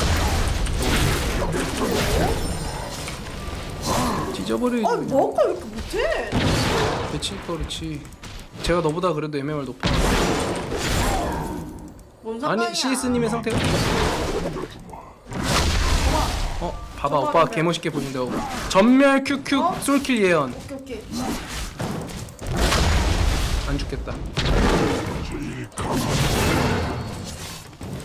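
Video game spell effects whoosh and crackle in bursts.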